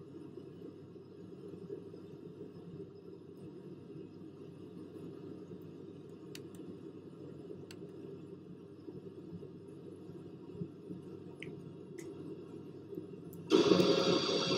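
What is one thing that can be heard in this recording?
Jet engines hum steadily, muffled as if from inside a cockpit.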